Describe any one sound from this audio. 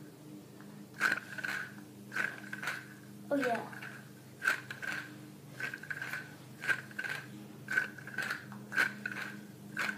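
A small toy rattles and clicks in quick bursts.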